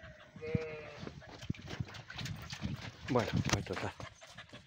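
Sheep bleat close by.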